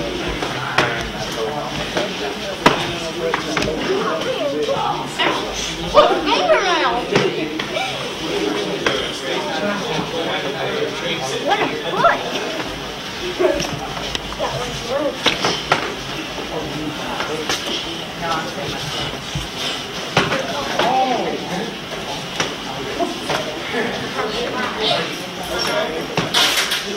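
Children and adults chatter and shout in an echoing hall.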